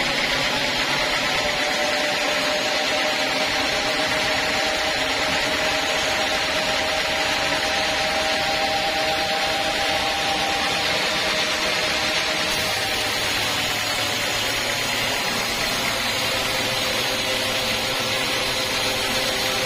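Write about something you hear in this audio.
A sawmill band saw cuts through a teak log.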